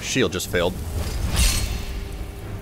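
A magic spell crackles and bursts with a whoosh.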